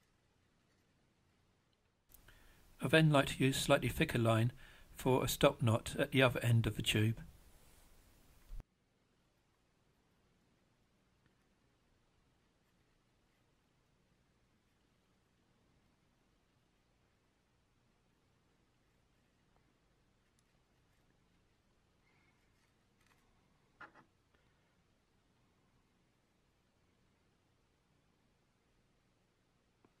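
Thin fishing line rustles softly between fingers.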